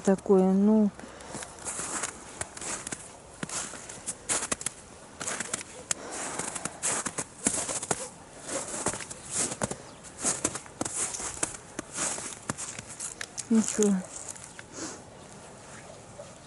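Footsteps crunch through snow at a walking pace.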